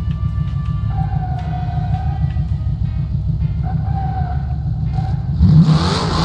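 Car tyres screech as they spin in place.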